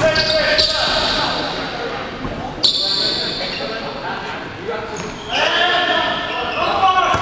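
Young men shout to each other across the hall.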